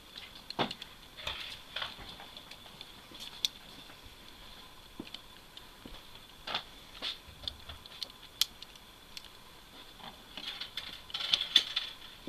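Small metal parts click and rattle in a man's hands.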